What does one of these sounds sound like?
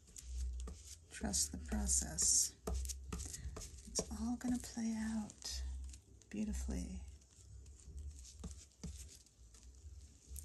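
A brush swishes across a smooth surface.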